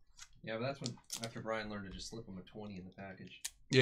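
A foil pack crinkles as a blade slices it open.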